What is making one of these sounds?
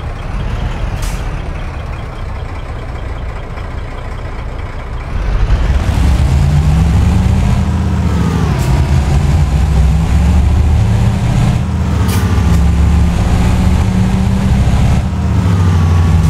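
A truck engine idles, then revs up and rumbles louder as the truck pulls away.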